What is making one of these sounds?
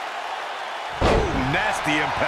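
A body slams onto a wrestling ring mat.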